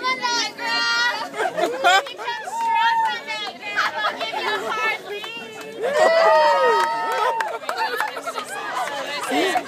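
A group of young people shout and cheer excitedly nearby.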